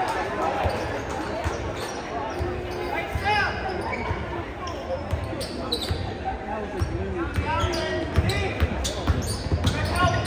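A basketball thumps as it is dribbled.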